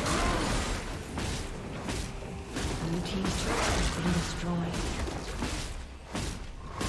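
Game spell effects crackle and clash in a fight.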